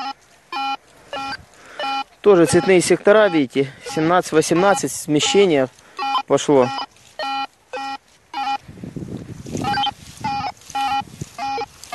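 A metal detector beeps in short, repeated tones.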